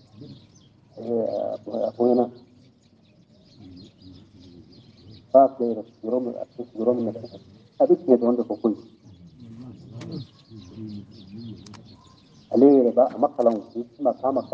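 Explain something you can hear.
An elderly man speaks in bursts with animation, close to a microphone.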